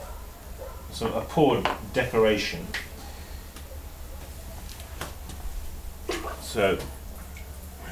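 A man speaks calmly, close by.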